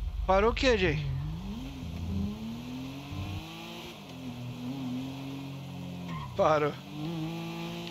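A car engine revs and hums as the car drives.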